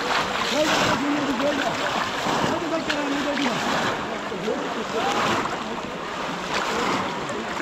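Water splashes and churns close by.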